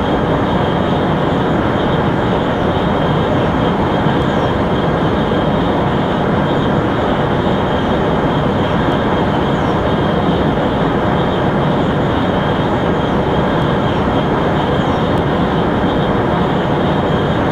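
A high-speed train roars steadily along the tracks.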